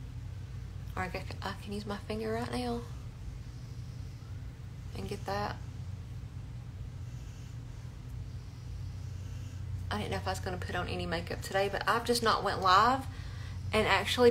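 A woman talks calmly and with animation, close to the microphone, in short bursts.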